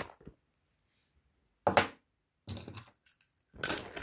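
A small metal bottle opener clinks as it is set down.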